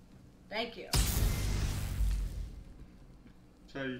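A magic spell bursts with a loud rushing whoosh that slowly fades.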